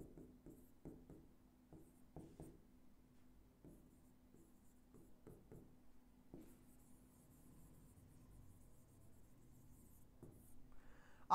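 A pen taps and scrapes against a hard writing board.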